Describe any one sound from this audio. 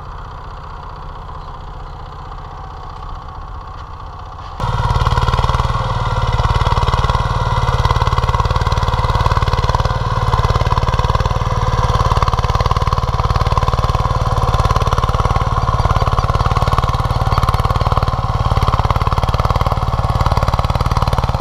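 A small tiller engine chugs steadily, close by.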